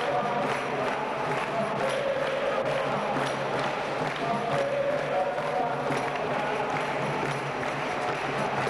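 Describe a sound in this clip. A group of people sings together in an echoing hall.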